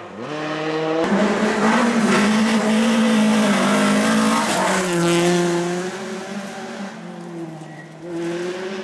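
Gravel sprays and crunches under a car's tyres as it speeds past.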